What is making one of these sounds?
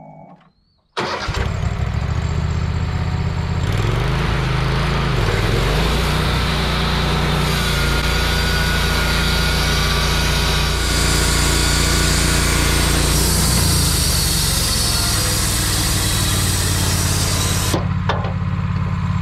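A sawmill engine roars loudly and steadily.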